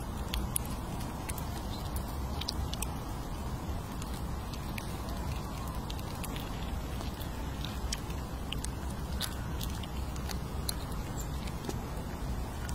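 A squirrel nibbles and crunches on nuts close by, with small crisp cracks.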